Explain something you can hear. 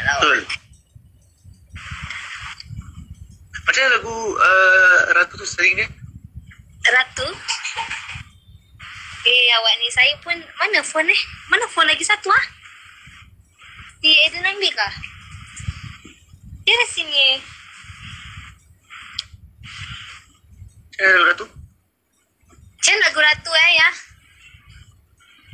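A young woman talks and laughs animatedly through a phone call.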